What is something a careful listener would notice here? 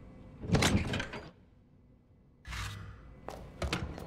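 A heavy metal lid creaks open.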